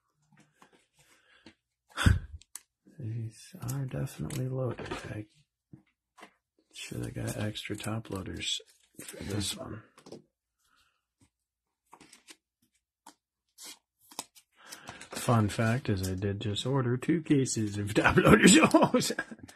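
Plastic card sleeves rustle and crinkle as cards slide in.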